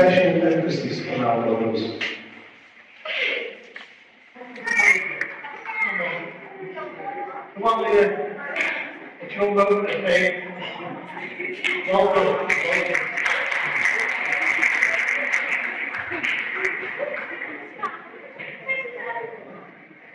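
A man speaks into a microphone over loudspeakers in an echoing hall.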